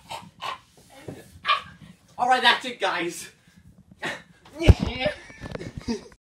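A young woman talks and laughs nearby.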